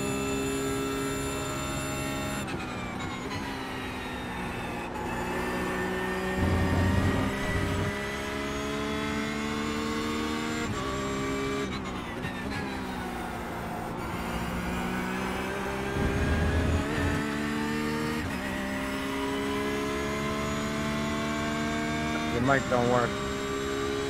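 A racing car engine roars, its pitch dropping on each shift down and climbing as it speeds up.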